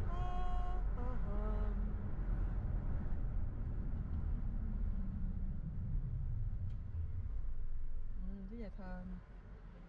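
A car engine hums steadily, fading near the end.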